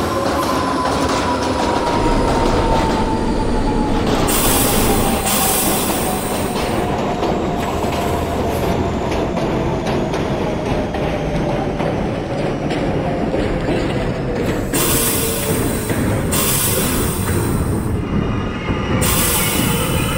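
An electric train's motor whines, falling in pitch as it slows.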